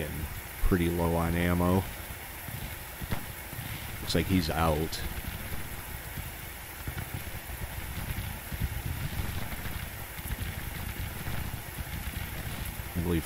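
Distant musket fire crackles and pops steadily.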